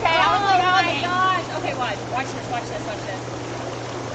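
A young woman speaks and laughs excitedly close by.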